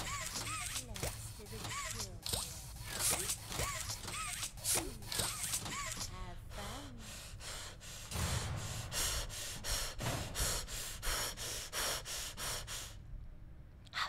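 A young woman talks with animation into a microphone, close up.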